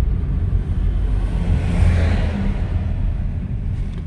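A truck passes close by in the opposite direction with a brief whoosh.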